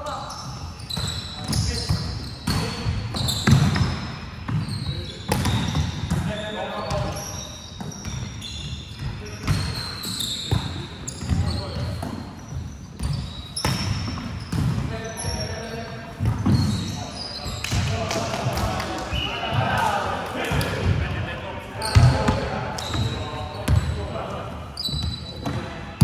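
A volleyball is struck with sharp slaps that echo through a large hall.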